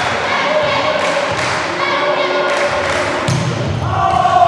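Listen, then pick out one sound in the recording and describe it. A volleyball is struck hard several times in a large echoing hall.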